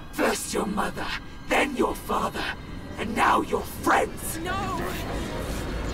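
A young woman shouts in anguish, heard close.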